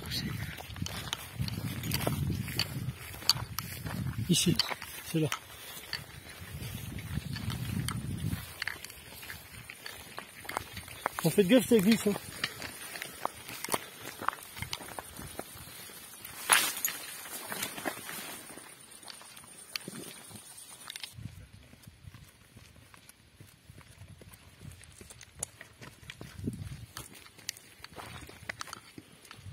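Footsteps crunch on gravel and dry ground.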